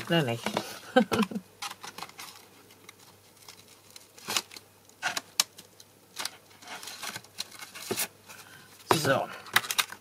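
Hands handle a stiff plastic sheet, which crinkles and clicks.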